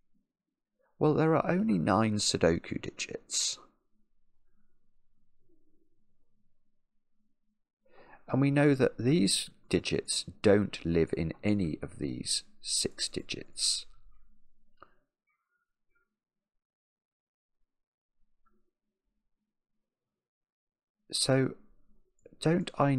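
A middle-aged man talks calmly and thoughtfully into a close microphone, pausing between phrases.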